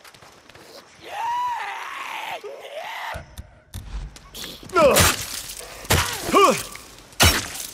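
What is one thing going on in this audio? A creature snarls and screeches.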